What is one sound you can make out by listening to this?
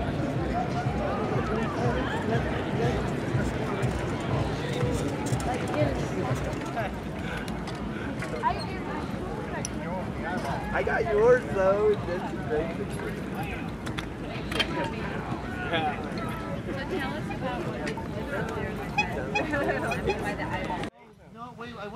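A crowd of people chatters outdoors in the open.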